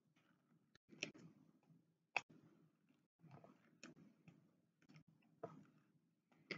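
A pen tool clicks softly.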